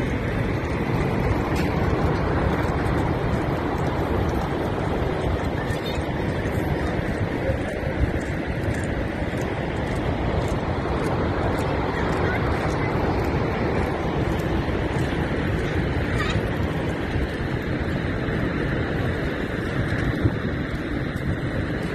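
A huge waterfall roars steadily close by.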